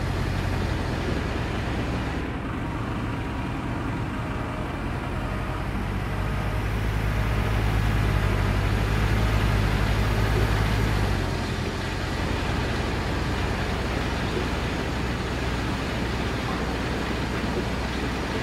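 A heavy truck engine rumbles steadily, growing louder as it drives, then settles to an idle.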